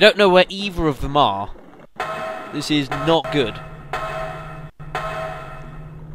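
Feet clang on the rungs of a metal ladder.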